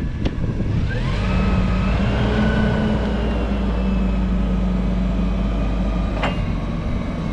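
A forklift's hydraulic lift whines steadily as the forks rise.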